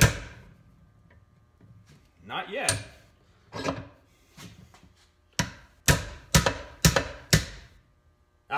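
A hammer strikes metal in sharp, ringing blows.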